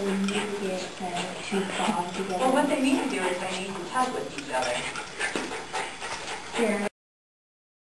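Two dogs growl and snarl as they wrestle playfully.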